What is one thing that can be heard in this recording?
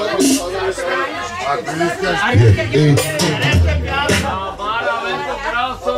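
A man sings through a microphone and loudspeakers.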